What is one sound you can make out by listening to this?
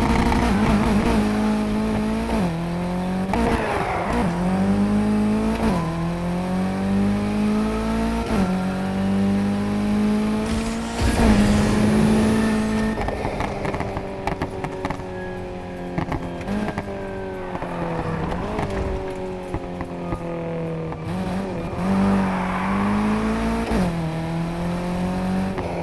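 A racing car engine roars and revs, rising through gears.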